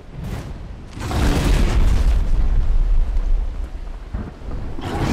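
A large creature roars deeply.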